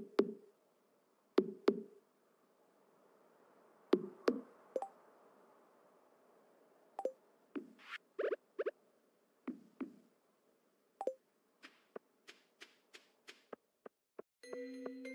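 Short video game sound effects pop and click now and then.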